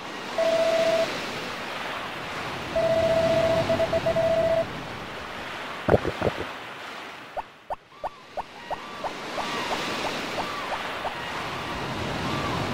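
Waves wash on a shore.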